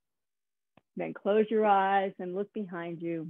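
A woman speaks in a drawn-out, sing-song voice through an online call.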